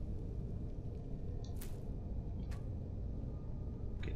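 A short soft rustle sounds as a hanging rabbit carcass is harvested.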